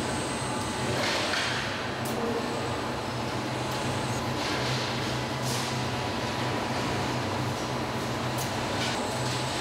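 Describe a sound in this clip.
Pneumatic clamps hiss and clack.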